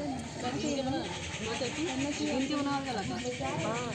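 A woman speaks into a handheld microphone.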